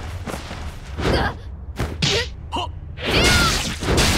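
A sword swishes and clashes in a video game.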